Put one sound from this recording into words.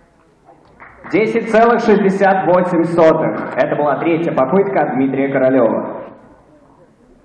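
A man speaks loudly.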